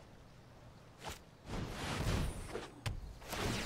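A magical spell effect whooshes and crackles.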